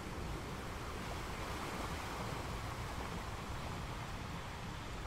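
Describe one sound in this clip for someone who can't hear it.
Foamy water washes and hisses over the rocks.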